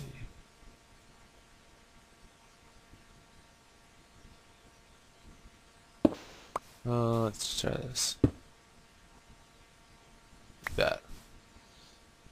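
Short soft clicks sound as blocks are placed.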